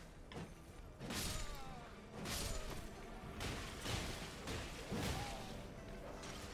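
Blades swish and clash in a rapid sword fight.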